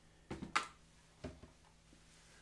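Objects clatter and knock on a workbench.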